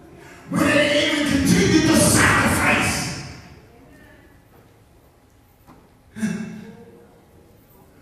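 A man preaches loudly and with fervour through a microphone in a large echoing hall.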